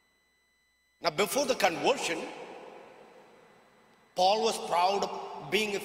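A man speaks slowly and calmly through a microphone in a large echoing hall.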